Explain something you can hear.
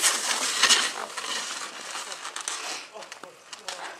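A snowboard scrapes and slides over packed snow.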